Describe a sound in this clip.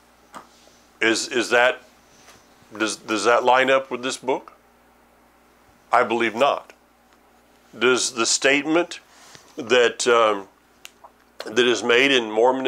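An older man speaks calmly and closely into a microphone, in short phrases with pauses.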